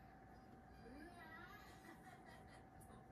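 A puppy whimpers softly.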